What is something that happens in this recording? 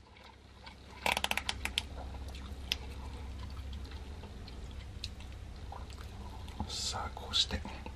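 A plastic packet crinkles as it is torn open.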